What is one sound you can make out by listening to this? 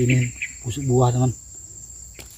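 A man speaks close by, calmly explaining.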